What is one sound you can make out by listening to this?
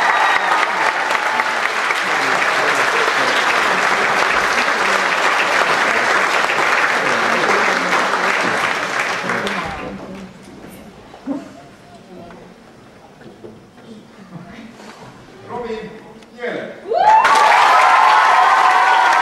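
A crowd of children claps loudly.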